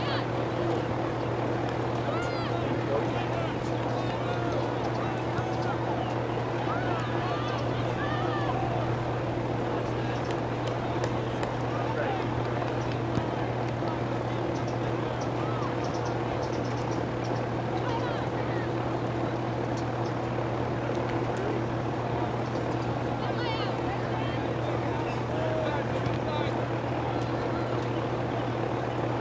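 Players call out faintly across an open field outdoors.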